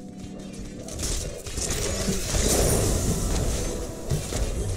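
Rapid weapon blasts and crackling magic burst in a close fight.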